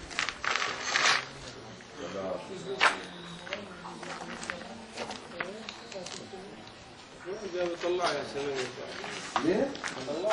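Footsteps crunch on loose rubble and broken glass.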